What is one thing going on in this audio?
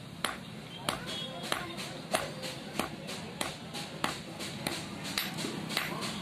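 A hammer rings sharply on hot metal on an anvil in steady, regular blows.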